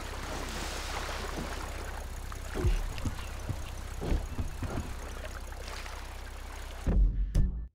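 Small waves lap gently against a boat's hull.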